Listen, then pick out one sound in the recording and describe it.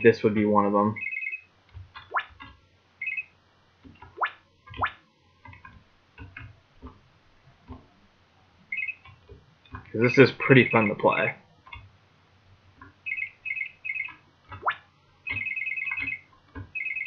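A computer game plays short, repeated electronic chirps.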